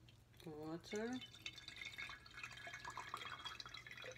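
Water pours from a plastic bottle and splashes.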